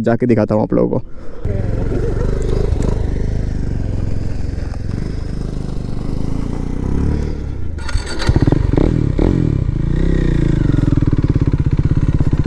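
A motorcycle engine idles close by with a deep, throbbing rumble.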